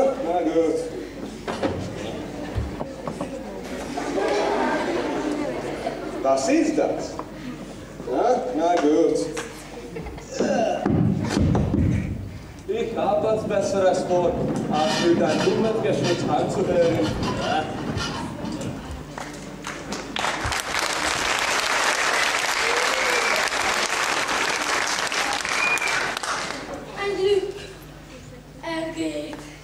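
A man speaks loudly and theatrically on a stage in a large hall.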